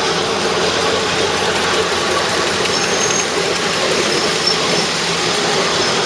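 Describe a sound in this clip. Steam hisses from a small locomotive.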